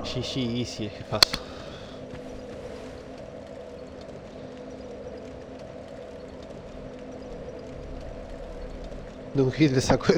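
A fire crackles steadily.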